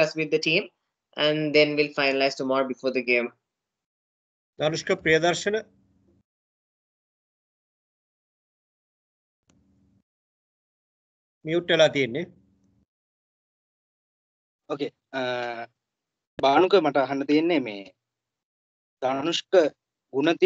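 A man speaks calmly over an online call, in short bursts with pauses.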